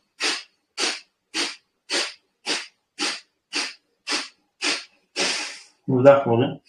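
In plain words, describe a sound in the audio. A man breathes out sharply in a quick, even rhythm.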